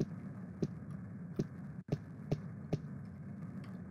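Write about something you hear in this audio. Footsteps tap on a hard stone floor in an echoing hall.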